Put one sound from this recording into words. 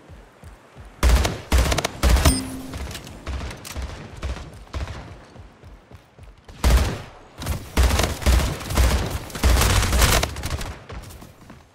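Rapid bursts of gunfire ring out in a video game.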